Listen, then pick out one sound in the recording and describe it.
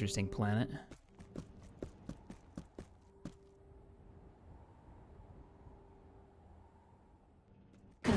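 Footsteps of a group running over dry ground.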